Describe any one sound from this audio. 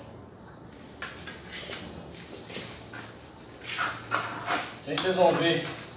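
A trowel scrapes wet plaster across a wall.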